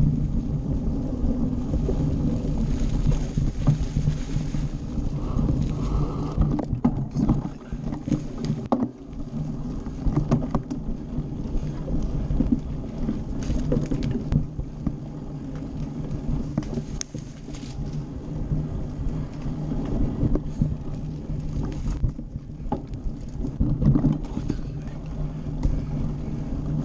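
Bicycle tyres rumble over a bumpy dirt trail.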